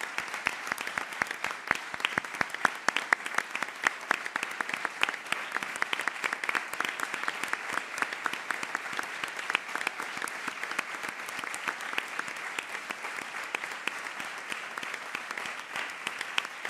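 A large audience applauds steadily in a roomy hall.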